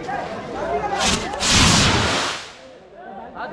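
A fountain firework hisses and sprays sparks.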